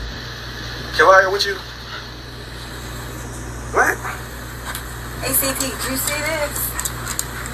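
A man talks on a phone close by.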